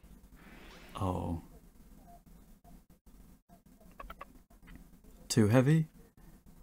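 A young man speaks briefly and with animation into a close microphone.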